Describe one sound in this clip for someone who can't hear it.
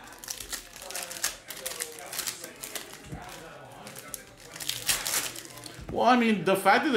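Plastic card wrappers crinkle and rustle as they are torn open.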